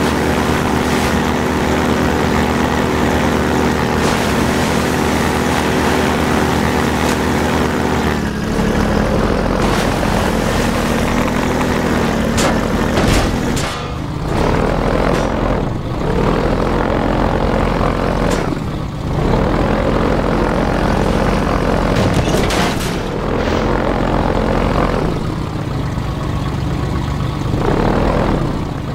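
An airboat engine drones loudly and steadily.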